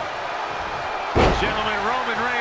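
A heavy body slams down onto a wrestling ring with a loud thud.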